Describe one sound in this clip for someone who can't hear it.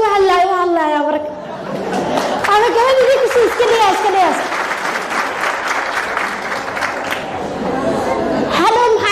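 A young woman speaks with animation into a microphone, in a room with some echo.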